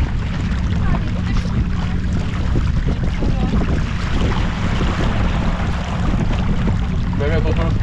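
Men talk loudly over the wind.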